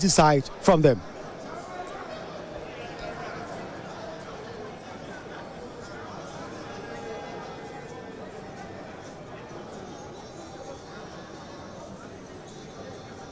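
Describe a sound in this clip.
A crowd of men and women murmur and chatter in a large hall.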